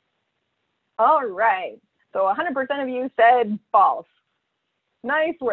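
A presenter speaks calmly through an online call microphone.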